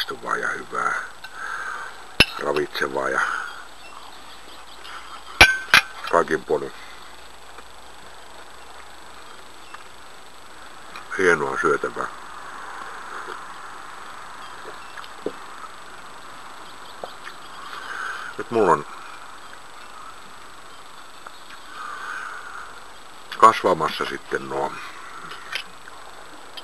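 An elderly man speaks calmly and slowly in bursts, close to a microphone.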